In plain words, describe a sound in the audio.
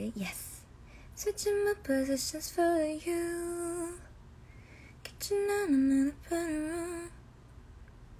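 A young woman sings softly close to a phone microphone.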